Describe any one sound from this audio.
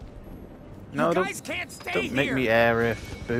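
A man shouts a warning.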